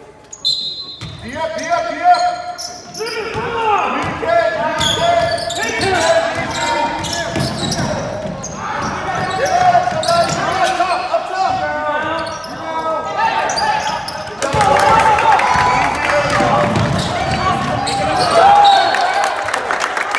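A crowd of spectators cheers and shouts in an echoing gym.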